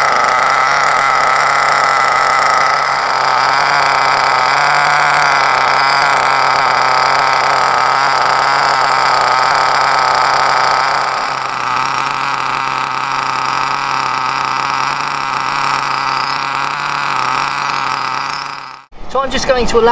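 A small nitro engine idles with a steady, high buzzing whine.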